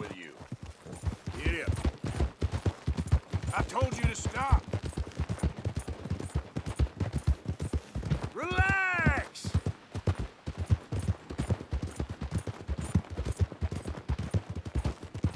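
Horse hooves clop steadily on a dirt trail.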